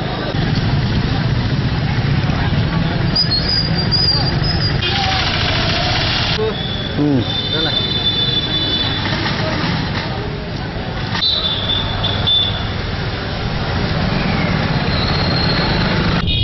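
Motorcycle engines hum as they ride along a street.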